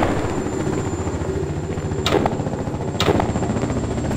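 A gun clicks as it is reloaded.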